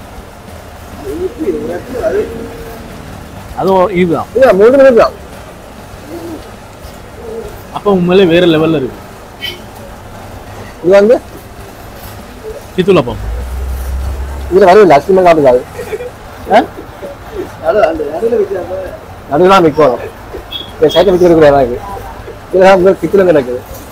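Several men talk and chat with animation close by.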